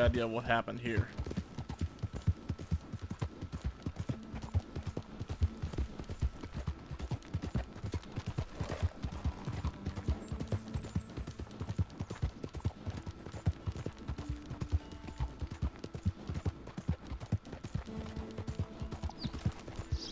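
A horse's hooves pound rapidly on a dirt track.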